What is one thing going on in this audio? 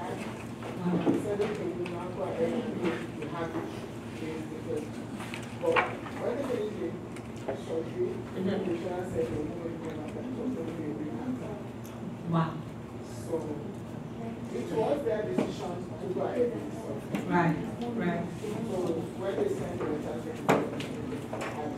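A woman speaks calmly into a microphone over a loudspeaker.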